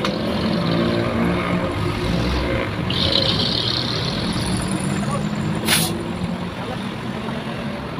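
A truck engine idles nearby with a low rumble.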